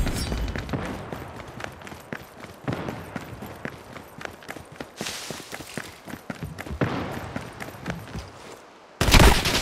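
Footsteps tread quickly on wet stone.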